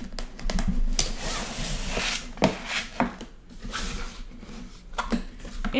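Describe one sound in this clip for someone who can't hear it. A cardboard lid scrapes as it is pulled off a box.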